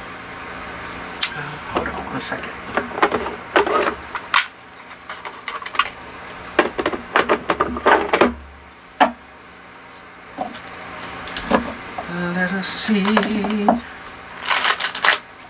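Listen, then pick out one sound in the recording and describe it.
Playing cards riffle and slap together as they are shuffled.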